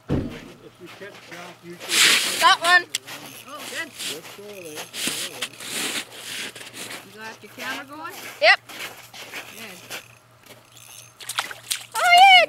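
A boy speaks with animation close by, outdoors.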